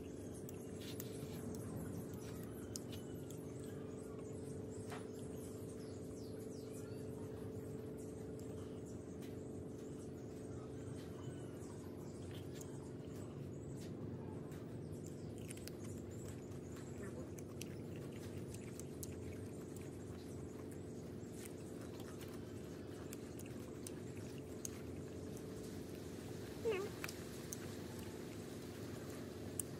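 Fingers tear and handle crisp food with soft crackles.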